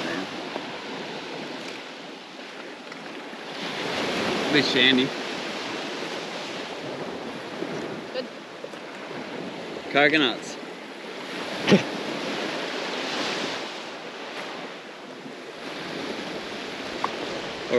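A young woman talks and laughs close by.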